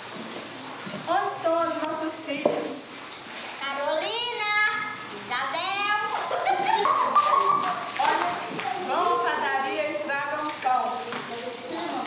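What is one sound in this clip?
Children sing together.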